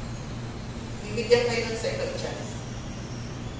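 A woman speaks into a microphone, heard through loudspeakers.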